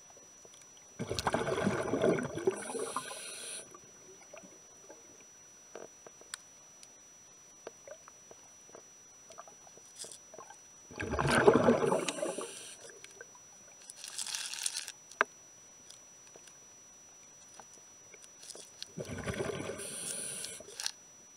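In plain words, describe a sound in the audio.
Air bubbles gurgle and rumble loudly underwater in short bursts.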